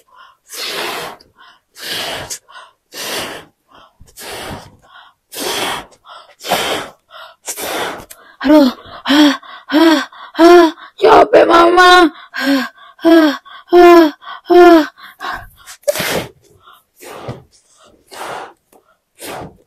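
A young woman blows hard into a balloon in short, breathy puffs.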